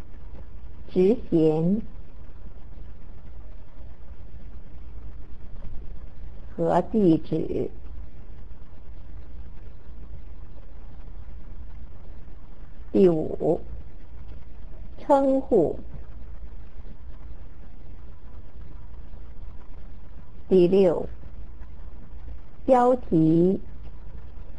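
A woman speaks calmly into a microphone in short phrases with long pauses.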